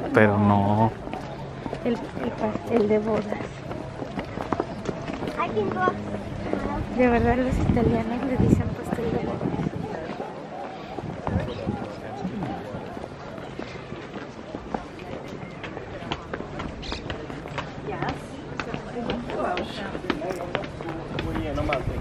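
A crowd of people chatters outdoors in the background.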